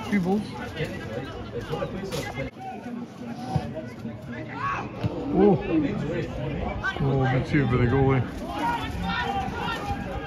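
Football players shout and call to each other across an open outdoor pitch.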